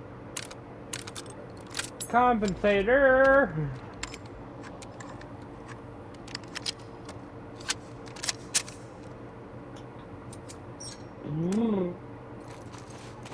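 Metal parts of a pistol click and clack as they are handled.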